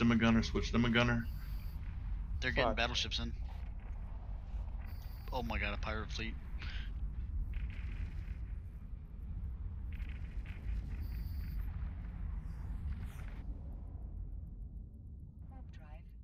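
A spaceship's engine hums low and steady, then fades away.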